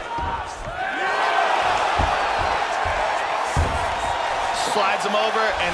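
A crowd cheers and roars loudly.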